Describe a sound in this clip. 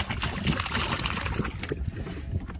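Fish splash into river water.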